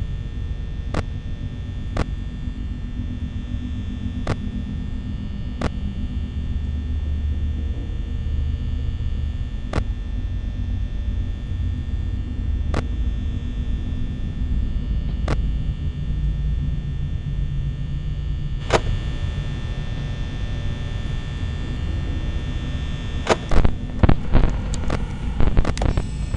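A monitor gives short clicks as its channels switch.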